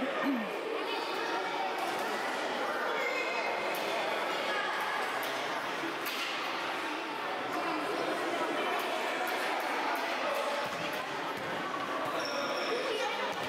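Children shout and call to each other in a large echoing hall.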